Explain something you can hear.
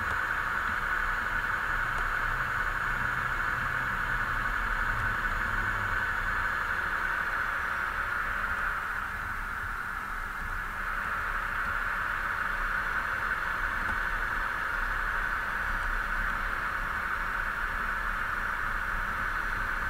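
Tyres roll on asphalt with a steady rumble.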